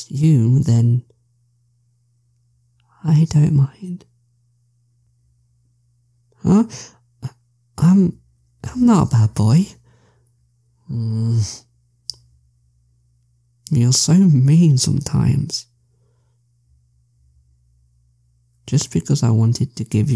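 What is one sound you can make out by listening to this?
A young man speaks close to a microphone in short, lively bursts with pauses between them.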